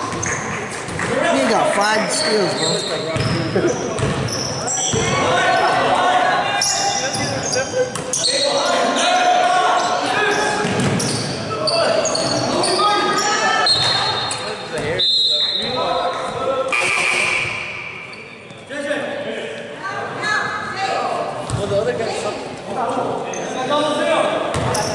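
Men talk and call out nearby in a large echoing gym.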